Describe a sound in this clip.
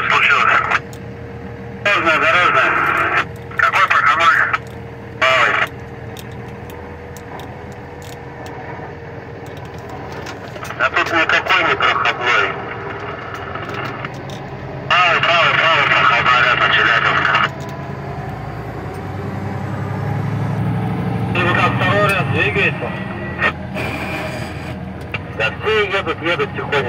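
A truck engine rumbles steadily, heard from inside the cab.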